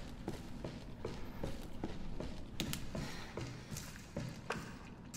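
Footsteps crunch steadily over a gritty floor.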